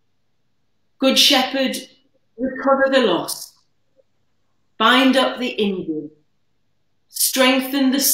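A middle-aged woman speaks slowly and calmly through a microphone over an online call, with pauses.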